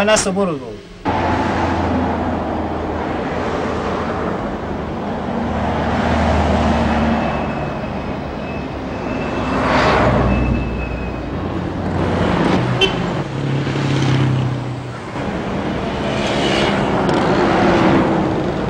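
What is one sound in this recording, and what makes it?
Car traffic rumbles along a street.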